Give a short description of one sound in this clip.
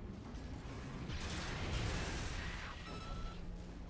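An electric blast crackles and roars.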